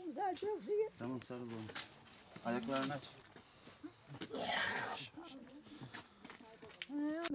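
A man talks close by.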